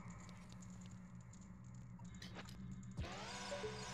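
Footsteps patter lightly on a stone floor in a game.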